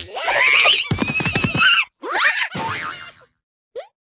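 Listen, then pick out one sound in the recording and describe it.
A cartoon cat squeals and whooshes away.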